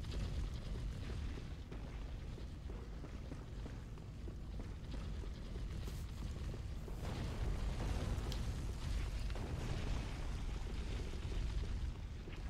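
Armoured footsteps clank on stone.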